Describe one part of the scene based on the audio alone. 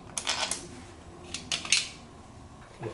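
Metal tools clink and rattle.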